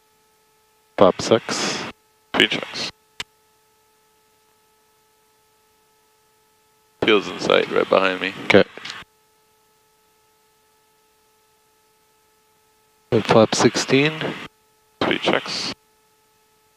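A young man speaks calmly in short bursts through a headset microphone.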